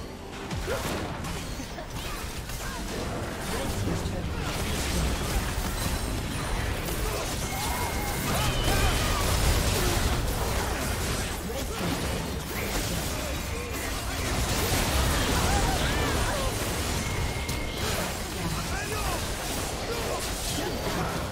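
Magic blasts crackle and boom in a fast fight.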